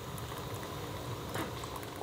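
A gas burner hisses softly.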